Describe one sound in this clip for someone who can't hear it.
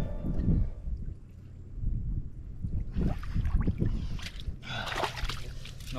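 Wet mud squelches as hands dig into it.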